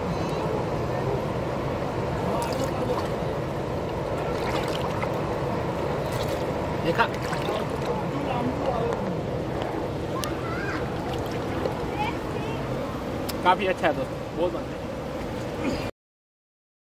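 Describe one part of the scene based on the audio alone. A river rushes and splashes over rocks nearby.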